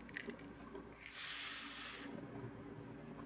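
Coffee beans rattle as they pour into a metal machine.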